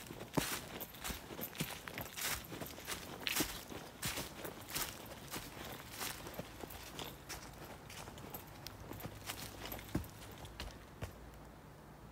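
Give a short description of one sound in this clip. Footsteps crunch and rustle through dry fallen leaves.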